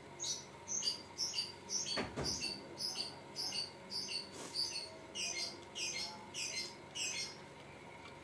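A young woman crunches loudly on crispy food, close by.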